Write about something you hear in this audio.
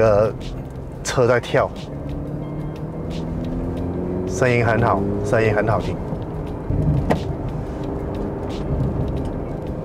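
A car engine hums and rises in pitch as the car speeds up.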